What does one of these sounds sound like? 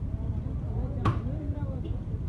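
A metal lid clinks against a pot.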